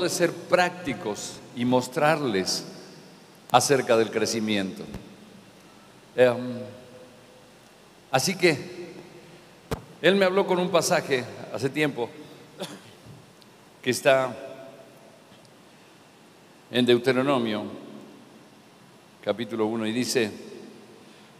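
A middle-aged man speaks with animation through a microphone in an echoing hall, pausing between phrases.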